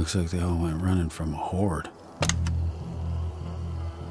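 A car boot lid clicks and swings open.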